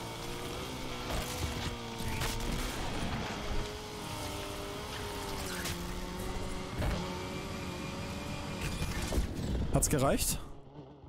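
Tyres skid and slide on loose dirt.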